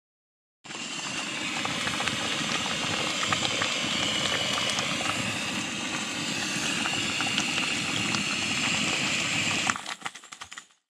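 A gas stove burner roars steadily.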